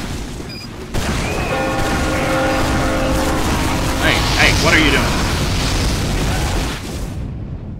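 Flames roar.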